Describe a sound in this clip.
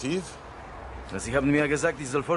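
A young man answers briefly.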